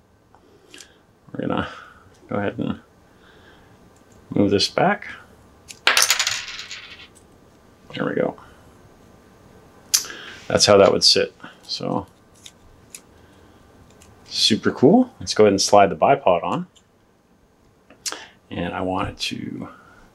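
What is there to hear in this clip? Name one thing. Small plastic parts click softly as they are handled and fitted together.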